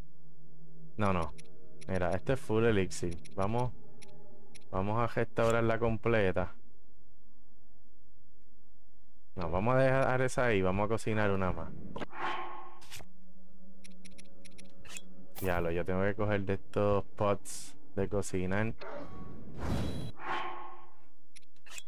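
A young man talks with animation close to a microphone, in bursts with pauses.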